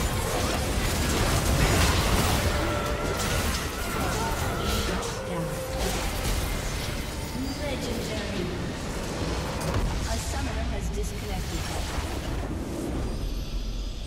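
Game spells and attacks crash and sizzle in a busy battle.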